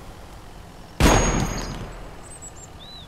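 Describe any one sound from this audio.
A heavy gun fires a single loud shot that echoes and fades away.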